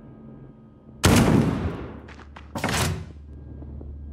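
Gunshots ring out sharply.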